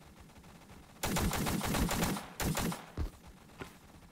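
Rapid gunfire rattles loudly in a burst.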